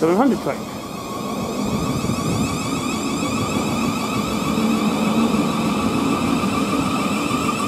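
A train pulls away, its engine rumble growing louder.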